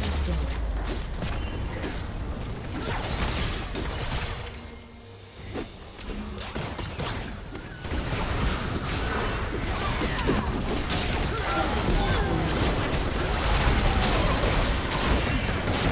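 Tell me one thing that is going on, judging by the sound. Magical spell blasts and weapon hits crackle and clash in a fast video game battle.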